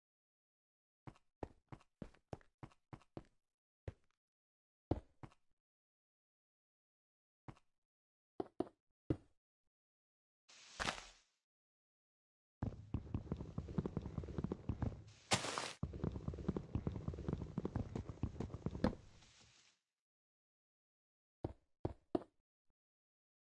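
Stone blocks thud into place one after another.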